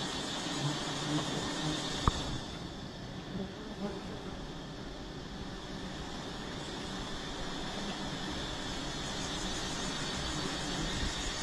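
Many bees buzz close by.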